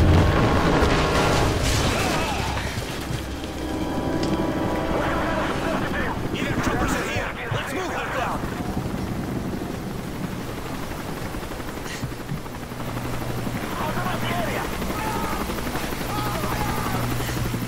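Fires roar and crackle steadily.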